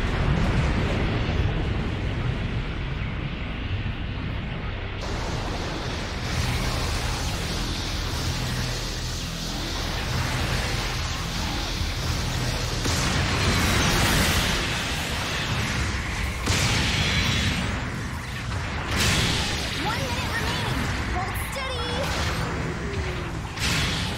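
Rocket thrusters roar steadily.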